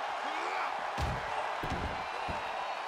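A body slams hard onto the floor with a heavy thud.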